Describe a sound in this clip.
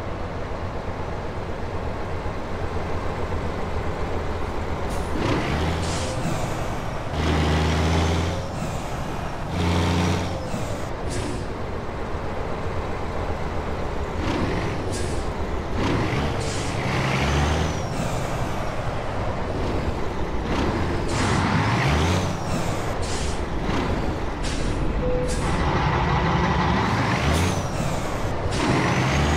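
A truck engine rumbles steadily as the truck drives slowly.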